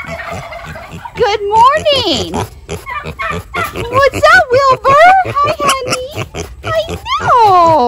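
A pig snuffles and grunts close by.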